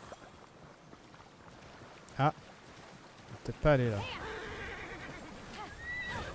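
Water splashes as an animal wades through a shallow stream.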